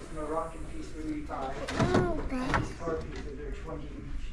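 A wooden drawer slides open.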